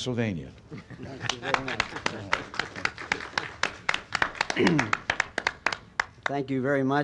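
A small group of people applaud.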